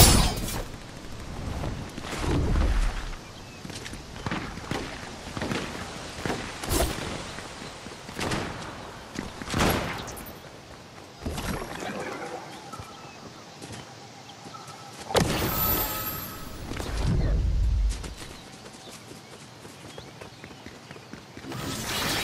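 Quick footsteps run over grass and stone.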